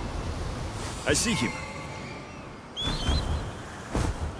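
An eagle screeches loudly.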